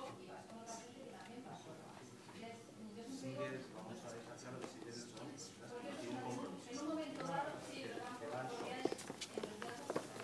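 A woman speaks calmly through a loudspeaker.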